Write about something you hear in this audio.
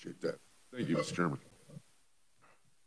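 A man speaks through a microphone in a calm voice.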